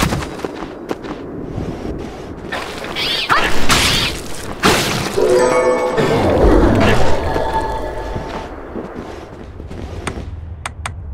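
Sword slashes and magic blasts crash loudly in fast bursts.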